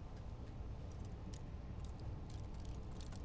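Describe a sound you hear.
A metal lock pick clicks and scrapes inside a lock.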